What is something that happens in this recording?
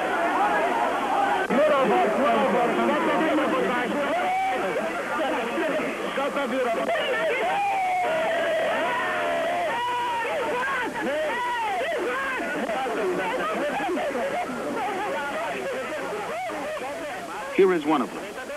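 A crowd of men and women talk and call out excitedly close by.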